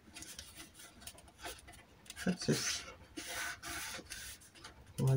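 A tool scrapes along folded paper.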